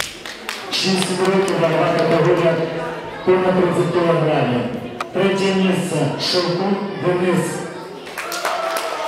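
A man announces loudly through a microphone in a large echoing hall.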